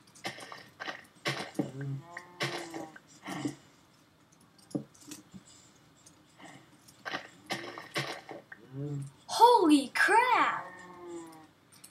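Dirt crunches in short bursts as blocks are dug out.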